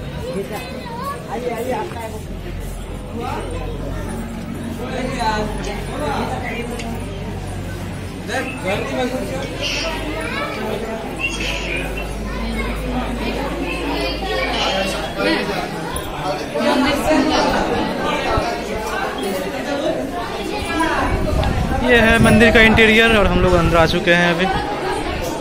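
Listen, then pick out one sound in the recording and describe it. Women and girls chat casually close by.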